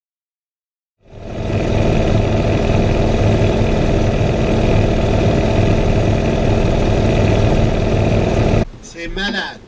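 An aircraft engine drones loudly and steadily from inside a small cockpit.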